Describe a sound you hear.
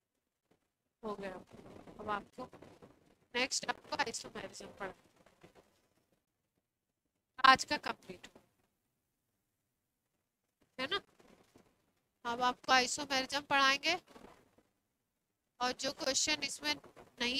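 A young woman speaks calmly through a headset microphone, in short bursts with pauses.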